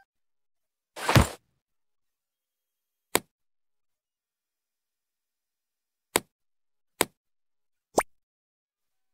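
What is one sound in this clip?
Short game sound effects click and chime as items are moved.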